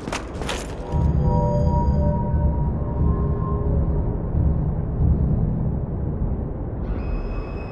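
A stone lift rumbles low as it moves.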